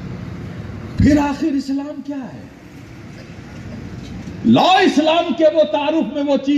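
An elderly man chants loudly through a microphone over loudspeakers.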